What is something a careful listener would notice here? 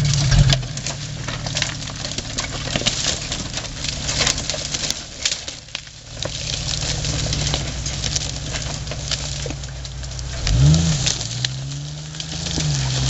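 An engine rumbles and revs as a four-wheel-drive vehicle crawls over rocks.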